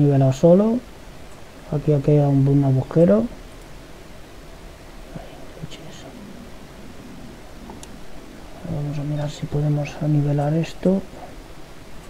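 A young man talks calmly into a microphone, in short bursts.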